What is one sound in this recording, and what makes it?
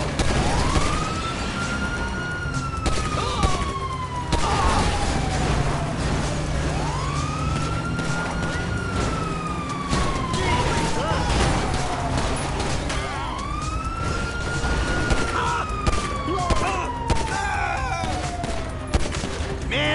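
Cars crash and bang against each other.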